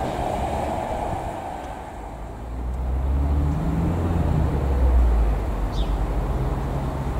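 A train rumbles along the tracks, growing louder as it approaches.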